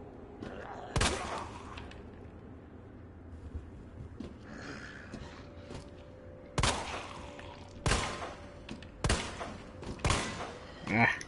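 Gunshots ring out one at a time, with short echoes.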